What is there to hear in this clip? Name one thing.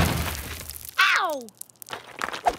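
A quick whoosh sweeps past and drops in pitch.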